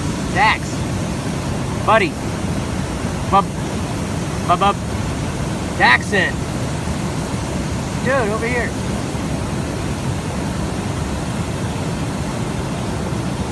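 A waterfall roars steadily nearby.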